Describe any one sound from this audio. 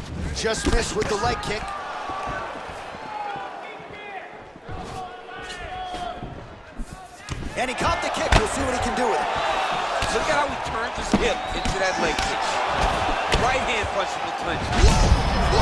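Punches and kicks land on a body with dull thuds.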